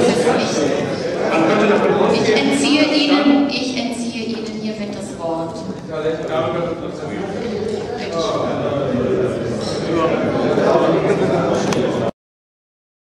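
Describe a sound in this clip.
A middle-aged man speaks steadily into a microphone in an echoing hall.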